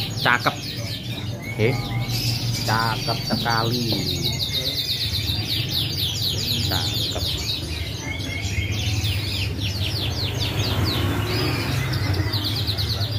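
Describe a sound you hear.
Many caged songbirds chirp and trill rapidly all around, close by.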